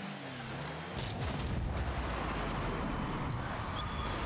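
A goal explosion booms.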